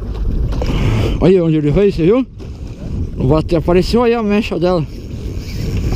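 A fishing reel's drag whines as line pulls out.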